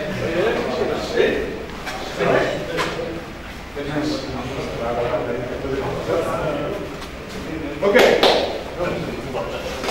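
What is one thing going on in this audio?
Feet shuffle and thump on a padded mat.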